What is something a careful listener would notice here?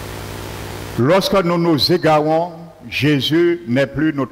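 An older man speaks with emphasis through a microphone.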